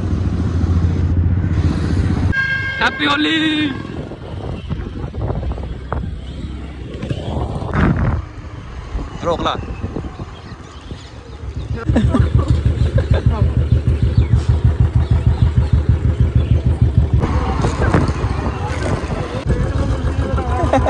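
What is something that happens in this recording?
A scooter engine hums as it rides along a road.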